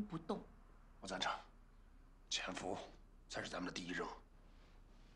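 A man speaks quietly in reply.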